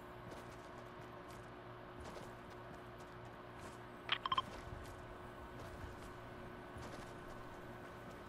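Quick footsteps run over grass.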